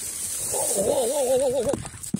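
Tall grass rustles as someone pushes through it.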